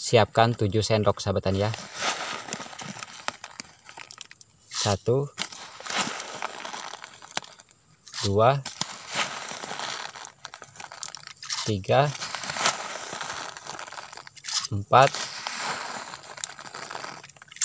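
Granules pour and patter into a plastic bag.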